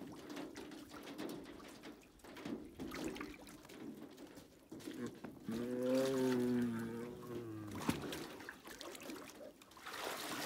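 Water sloshes and splashes as a tiger wades in a tub.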